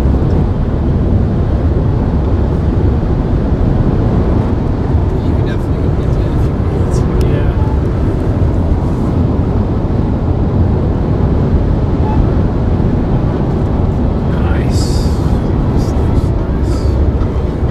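Road noise rumbles steadily inside a moving car on a highway.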